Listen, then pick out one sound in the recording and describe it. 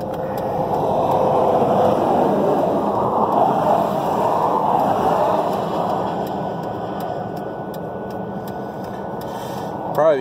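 A hand rummages and scrapes against engine parts.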